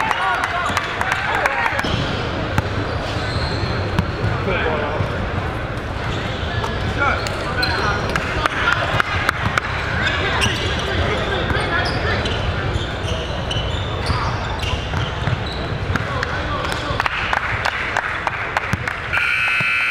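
A large crowd murmurs and chatters in an echoing gym.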